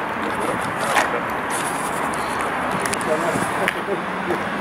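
Muskets clatter as soldiers shoulder them.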